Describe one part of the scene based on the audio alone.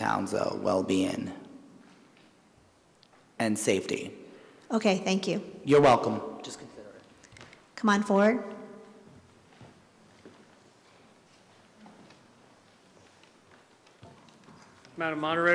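A woman speaks into a microphone over a loudspeaker, in short phrases with pauses, in a large echoing hall.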